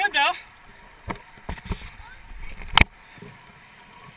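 A kayak paddle splashes into the water.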